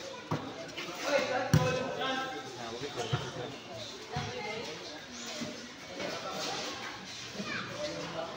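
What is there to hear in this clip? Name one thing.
Young players shout and call out to each other across an open, roofed court.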